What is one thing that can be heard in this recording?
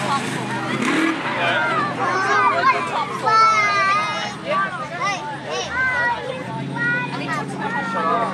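Spectators chatter and call out nearby outdoors.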